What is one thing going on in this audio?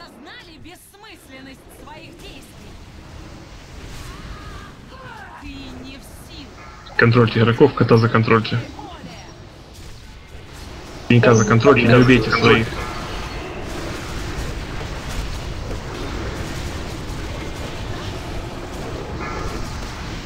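Spell effects whoosh and crackle in a busy fantasy battle.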